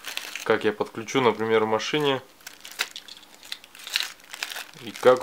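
A plastic bag crinkles as hands handle it.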